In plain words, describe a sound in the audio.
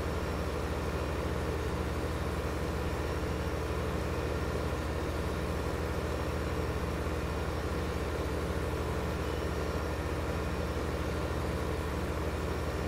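A large tractor engine drones steadily at low pitch.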